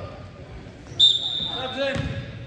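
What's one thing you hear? A referee's whistle blows shrilly.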